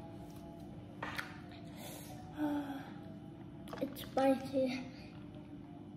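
A young girl speaks softly close by.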